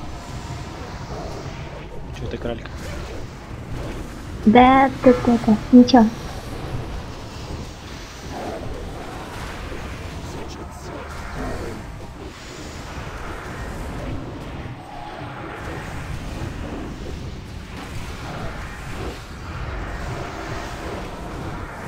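Spells crackle and whoosh in a busy fantasy battle.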